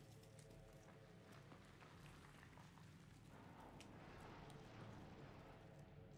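Footsteps tap on a hard tiled floor.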